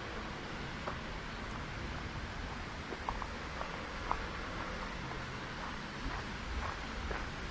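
A fountain splashes steadily outdoors.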